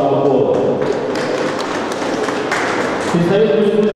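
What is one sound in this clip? Spectators clap and cheer in a large hall.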